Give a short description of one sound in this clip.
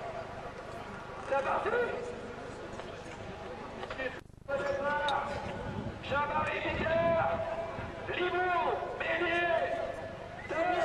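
A racing car engine drones in the distance.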